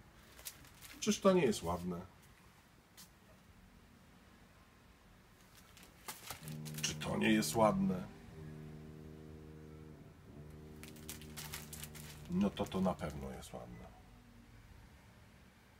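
Packaged napkins rustle and tap as they are handled.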